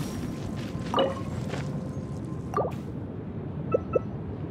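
Short video game interface chimes sound.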